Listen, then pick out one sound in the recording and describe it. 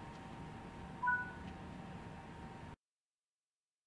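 A train rushes past close by.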